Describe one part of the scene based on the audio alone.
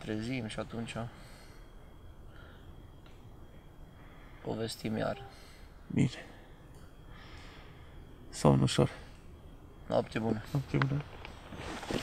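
A man speaks quietly and close by, in short bursts.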